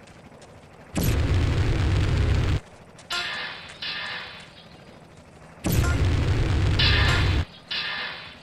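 A flamethrower roars in long bursts.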